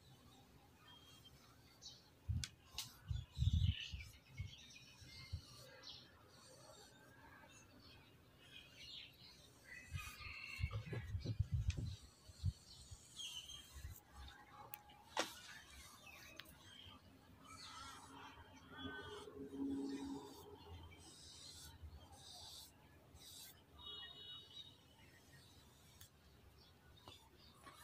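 A small pad rubs and scrubs across a wooden surface.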